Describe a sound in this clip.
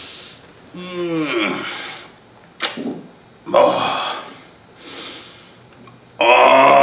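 A man groans and sighs in discomfort.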